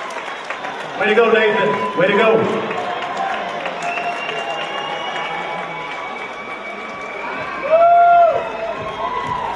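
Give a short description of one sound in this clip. Audience members whistle loudly.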